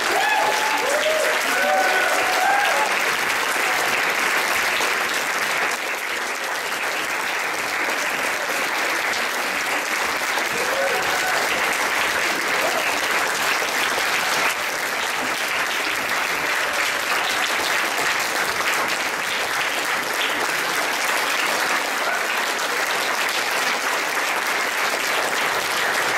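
An audience claps and applauds steadily throughout.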